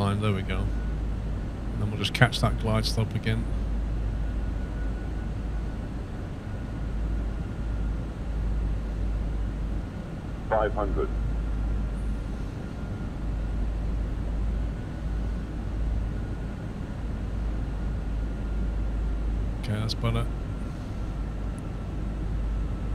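Jet engines hum low and steady.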